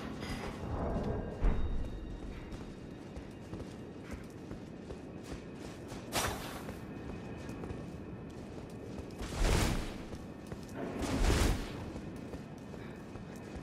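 Armoured footsteps clatter on stone as a warrior runs.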